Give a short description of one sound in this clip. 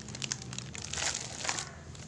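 Plastic snack wrappers rustle and crinkle as a hand handles them.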